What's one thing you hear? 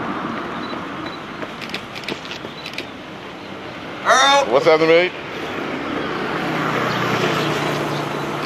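Running footsteps slap on a paved road close by.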